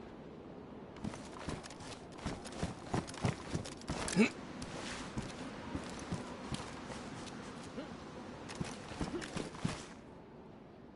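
Footsteps crunch on gravel at a brisk pace.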